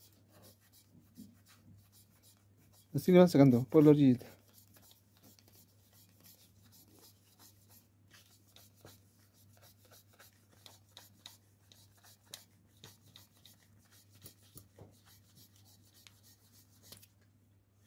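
Small scissors snip through thick fabric with soft, quick clicks.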